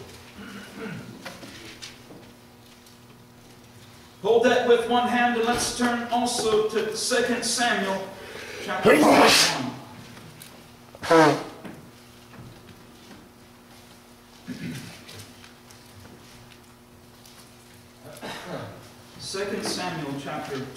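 A man speaks calmly through a microphone in a large echoing room, with pauses.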